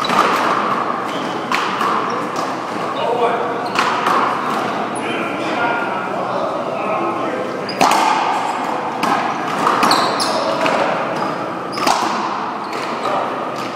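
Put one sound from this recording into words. A rubber ball smacks sharply against walls and rackets, echoing loudly.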